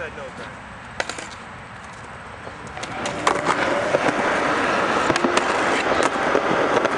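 A skateboard clacks and knocks against concrete.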